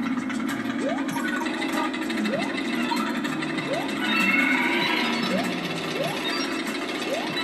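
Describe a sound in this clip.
Music from a platform video game plays from a television.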